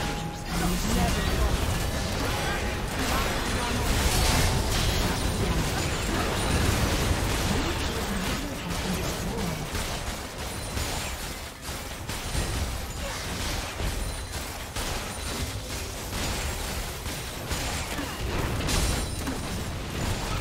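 Spell effects crackle and blast in a game battle.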